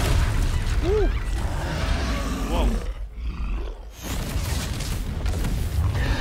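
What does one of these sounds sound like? A troll growls and roars.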